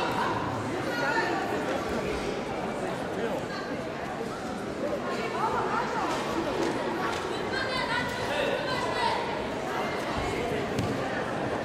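Bare feet thud and shuffle on the mat.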